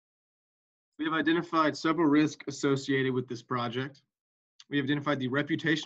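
A young man speaks calmly through an online call microphone.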